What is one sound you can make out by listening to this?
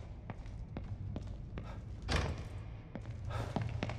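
A door swings open with a creak.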